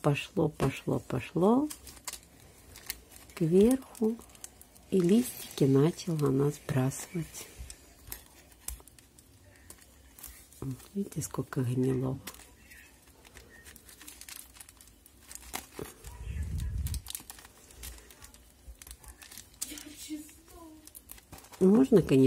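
Fingers rustle and crumble dry roots and soil.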